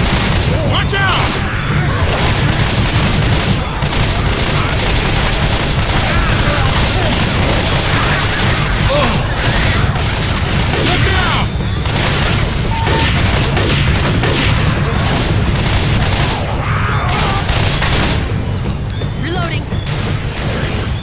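A rifle fires repeated loud shots.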